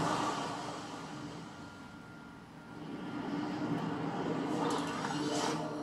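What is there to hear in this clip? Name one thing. Wind rushes loudly, dipping midway and swelling louder toward the end.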